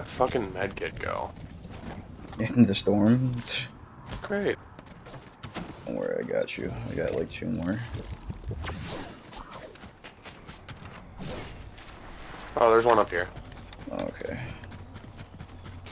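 Footsteps crunch on snow in a video game.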